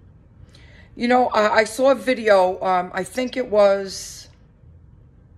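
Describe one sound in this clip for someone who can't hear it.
A middle-aged woman speaks calmly and close up.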